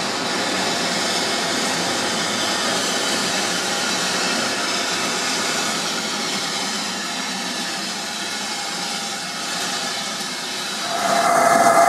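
A steam locomotive chugs slowly toward the listener.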